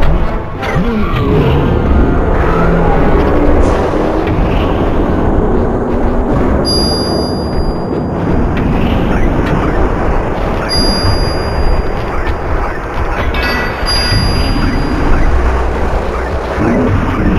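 Video game fight sounds of hits and electric zaps ring out.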